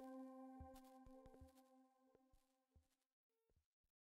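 A modular synthesizer hums a steady electronic drone that fades away.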